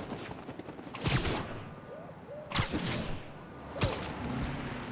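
Webs shoot out with sharp thwips.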